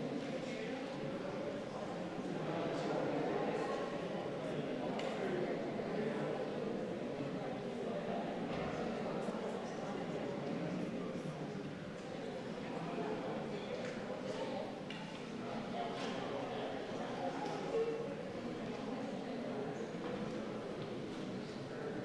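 A crowd of people murmurs softly in an echoing hall.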